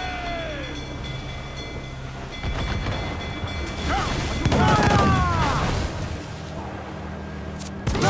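Waves crash and spray against a wooden ship's hull.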